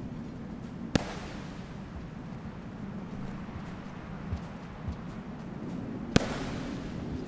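Gunshots crack sharply and ring out with a fading echo.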